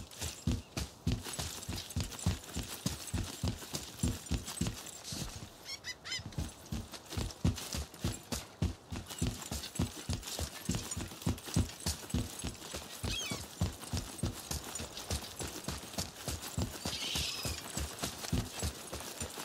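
Heavy footsteps thud steadily on stone at a running pace.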